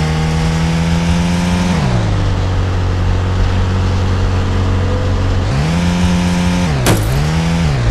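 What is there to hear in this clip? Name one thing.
A car engine hums steadily, dropping in pitch and rising again as the car slows and speeds up.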